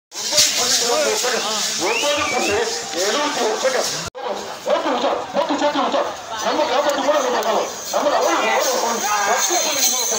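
A crowd of men shouts and calls out outdoors.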